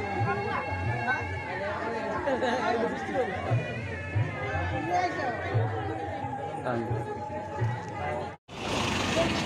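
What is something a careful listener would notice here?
Music plays through a loudspeaker in a large hall.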